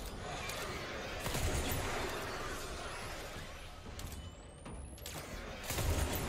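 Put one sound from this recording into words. A gun fires loud shots in quick bursts.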